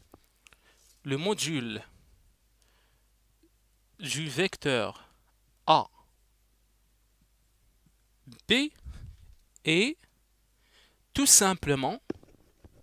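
A man speaks calmly into a headset microphone, in short phrases with pauses.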